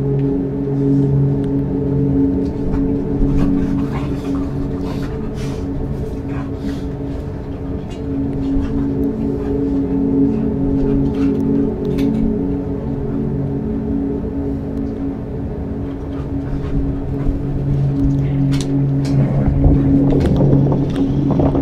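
A woman talks quietly into a microphone.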